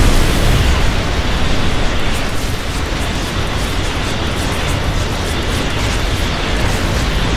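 Rapid weapon fire crackles and clicks throughout.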